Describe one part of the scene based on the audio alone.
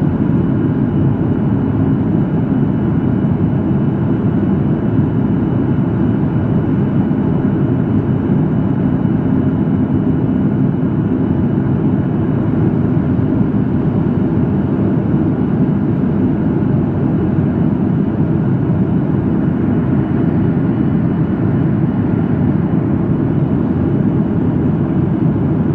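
Jet engines roar steadily inside an airliner cabin in flight.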